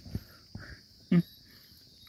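A goat bleats briefly.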